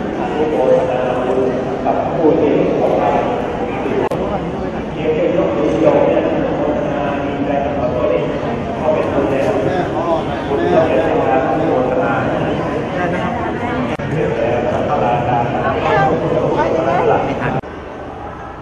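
A crowd of men and women chatter and murmur close by in an echoing hall.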